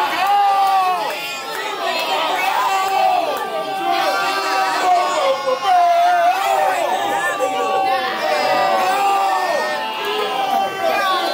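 A young man raps loudly and with animation, close by.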